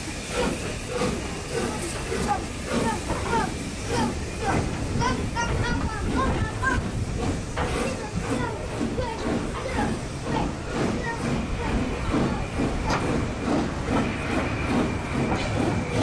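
A steam locomotive chuffs in the distance.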